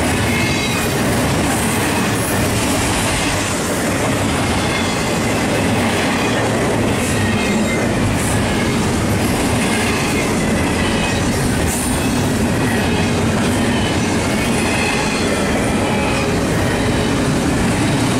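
A long freight train rumbles steadily past close by.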